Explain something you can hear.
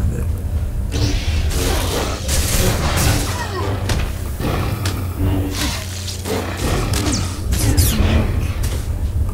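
A lightsaber hums and clashes in quick swings.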